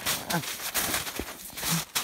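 A gloved hand crunches into snow.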